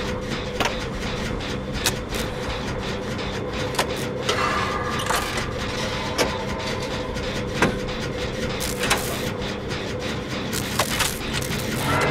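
Metal parts click and clank as an engine is worked on.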